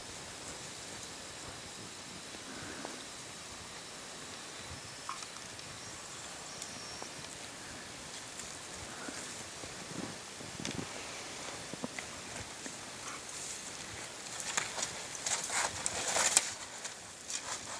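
Boots crunch through deep snow.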